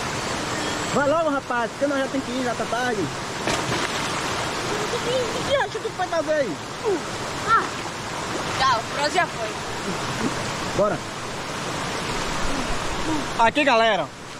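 A young boy talks and calls out with animation nearby.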